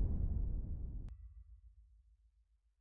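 A car engine rumbles low and fades away.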